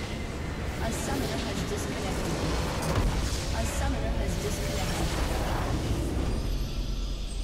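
A base structure explodes with a loud rumbling crash.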